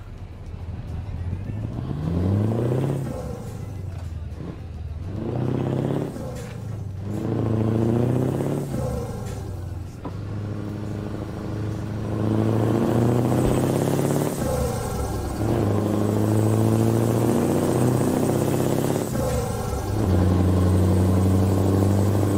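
A truck engine revs up and down through the gears.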